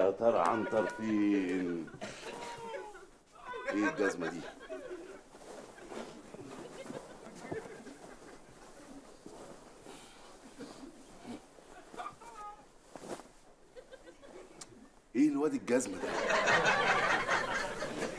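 A heavy blanket rustles as it is shaken and spread.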